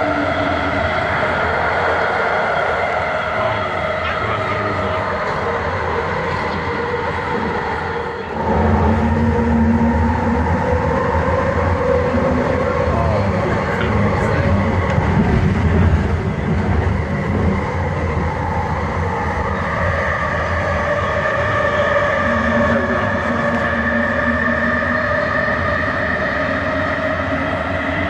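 Wheels clatter over rail joints.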